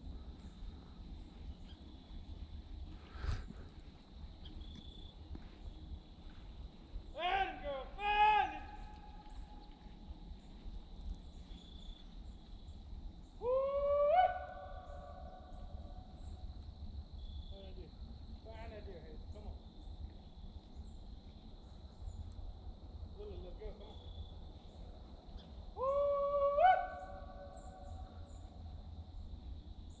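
Wind blows through pine branches outdoors.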